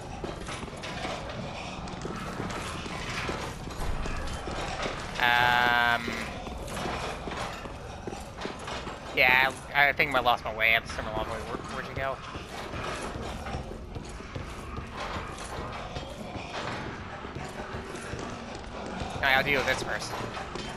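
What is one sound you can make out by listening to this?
Armoured footsteps clank and scrape on stone.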